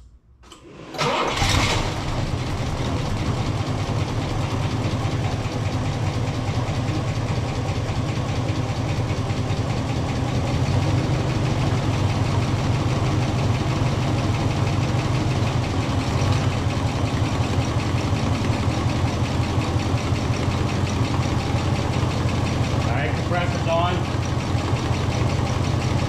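A car engine starts up and idles with a steady rumble.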